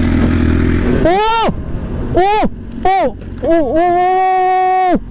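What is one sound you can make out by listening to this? A motorcycle engine revs sharply several times, rising and falling in pitch.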